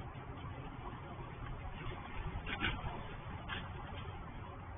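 A fabric cover rustles and swishes as it is pulled off a scooter.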